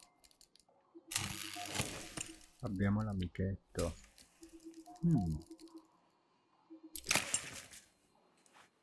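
Leather straps creak and buckles click open.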